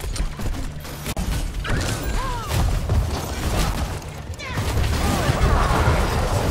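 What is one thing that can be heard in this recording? Explosions and magic blasts crackle in a busy video game battle.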